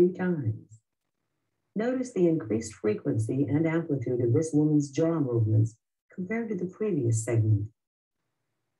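An elderly woman speaks in short bursts, heard through a recording.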